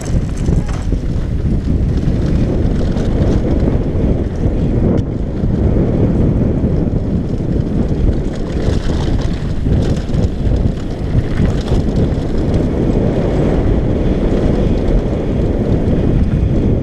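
Wind roars loudly over a helmet microphone.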